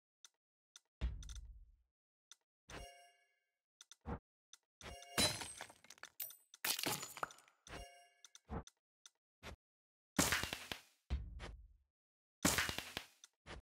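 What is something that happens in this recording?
Soft menu clicks and chimes sound now and then.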